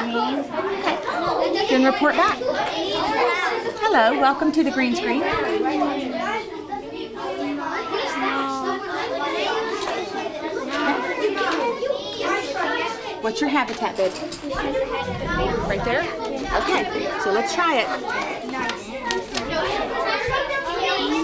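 A woman speaks calmly and clearly to children nearby.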